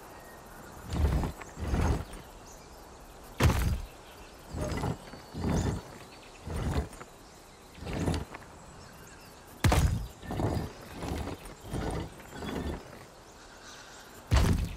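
Heavy metal pieces clunk and grind as a dial turns.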